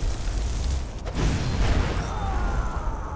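A fireball bursts with a roar.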